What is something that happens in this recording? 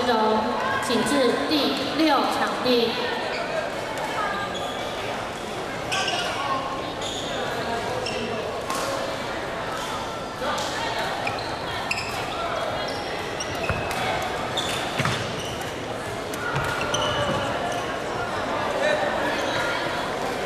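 A crowd chatters and shouts across a large echoing hall.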